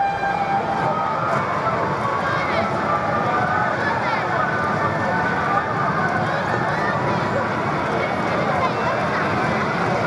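Racing car engines roar loudly and steadily.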